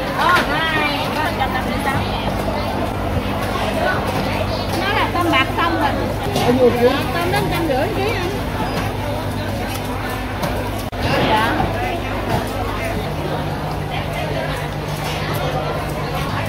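Many men and women chatter and call out nearby.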